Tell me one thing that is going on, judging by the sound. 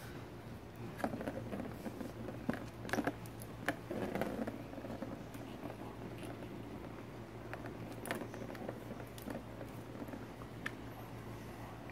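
A kitten bats a ball that rattles around a plastic track toy.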